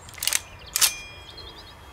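A gun's parts click sharply.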